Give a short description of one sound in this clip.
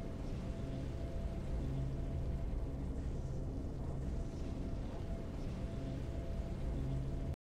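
Triumphant game music plays steadily.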